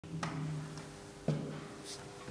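A door handle turns and the latch clicks.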